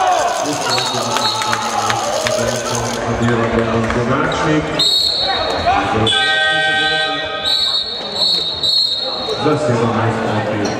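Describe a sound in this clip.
Sneakers squeak on a hard floor in a large echoing hall.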